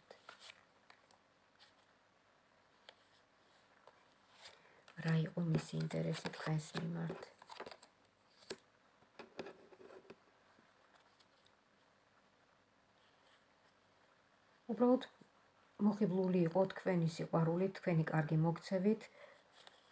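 A small card box is handled with light tapping and rustling.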